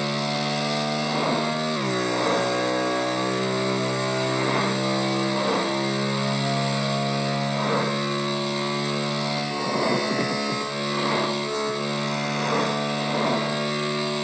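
A motorcycle engine hums steadily at high speed.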